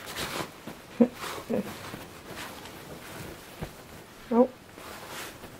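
A dog yelps in short high cries.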